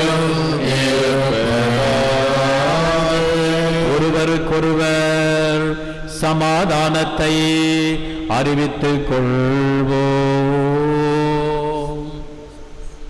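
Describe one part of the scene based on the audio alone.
A middle-aged man sings a prayer into a microphone, his voice echoing in a large hall.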